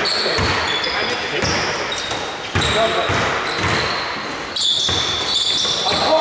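Sneakers squeak on a hard floor in an echoing hall.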